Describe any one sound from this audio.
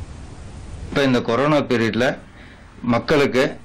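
A man speaks clearly and steadily into a close microphone.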